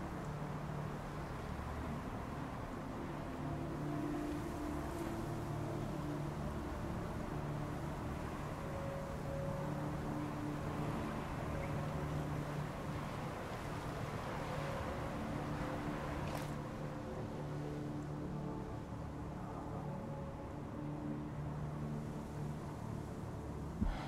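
Wind blows steadily through a snowstorm.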